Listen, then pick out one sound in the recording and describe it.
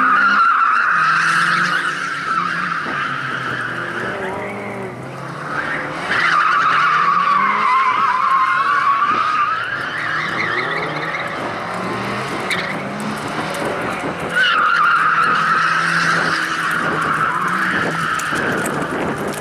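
Tyres squeal on asphalt as a rally car slides around cones.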